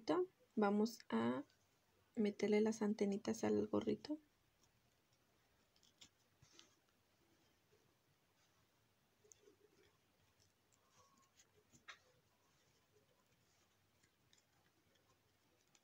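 Fingers rustle softly against a crocheted toy.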